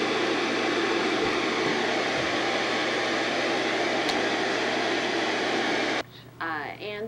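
Television static hisses loudly and steadily, then cuts off.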